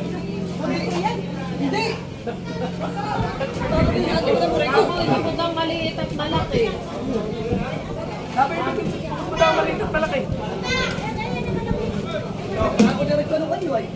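A man handles fish, thudding them into plastic crates.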